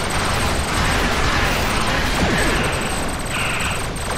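Explosions rumble.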